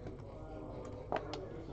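A hand taps a game clock button with a click.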